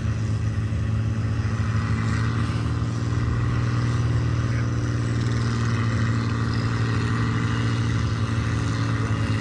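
A diesel farm tractor engine labours under heavy load as it pulls a weight sled.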